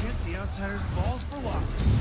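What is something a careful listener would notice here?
A magical whoosh swirls.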